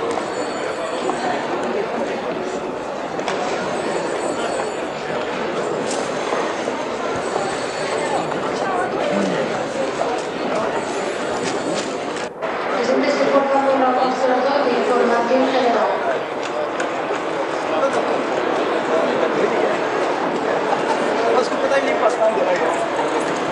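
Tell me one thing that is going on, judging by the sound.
A crowd of men murmurs and talks in a large echoing hall.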